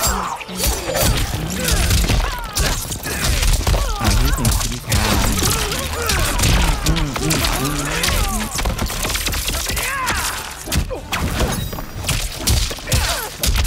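Punches and kicks land with heavy thuds in a fighting game.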